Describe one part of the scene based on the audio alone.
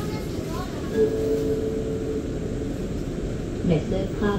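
A train rolls in and slows down with a low rumble.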